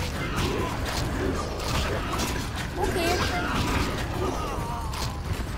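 Creatures snarl and growl.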